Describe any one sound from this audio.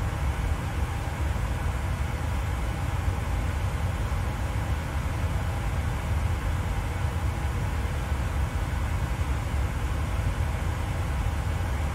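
Jet engines roar with a steady low drone.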